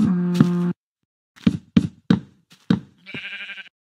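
Footsteps thud on stone steps.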